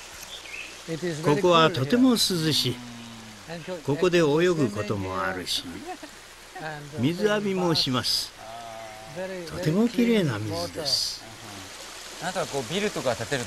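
An elderly man talks calmly up close.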